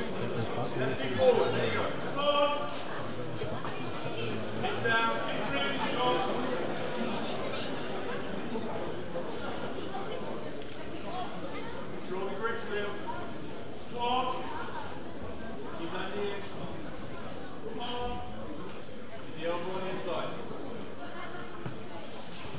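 Men in the crowd shout encouragement loudly.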